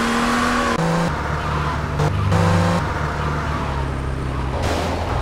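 A car engine roars steadily as the car speeds along.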